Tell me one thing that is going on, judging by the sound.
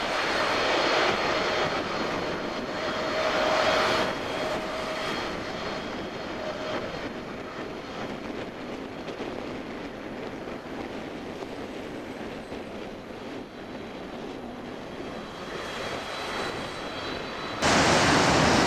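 A jet airliner's engines roar loudly as it lands and slowly fades into the distance.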